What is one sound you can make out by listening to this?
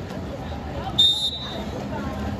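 A referee's whistle blows once, short and sharp.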